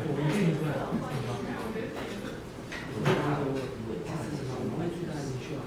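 A man speaks calmly to an audience in a large echoing hall.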